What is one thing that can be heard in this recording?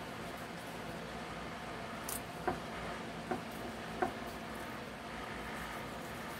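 A knife cuts through raw meat with soft slicing sounds.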